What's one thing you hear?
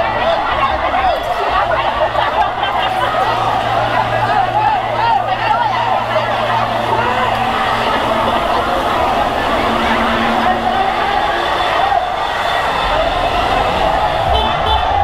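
A large crowd of young people cheers and shouts outdoors.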